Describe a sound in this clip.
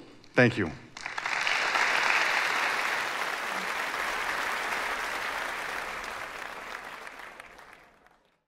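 An audience applauds loudly and then fades out.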